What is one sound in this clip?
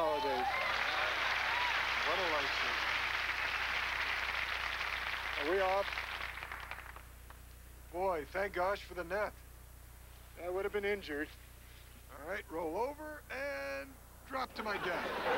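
A man speaks with animation, outdoors.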